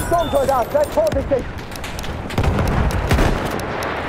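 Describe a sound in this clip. An explosion bursts with a deep rumble.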